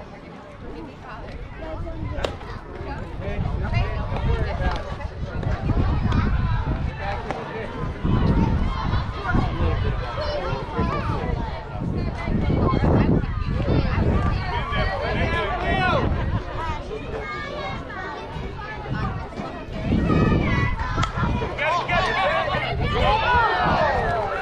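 Girls and adults chatter and cheer from nearby.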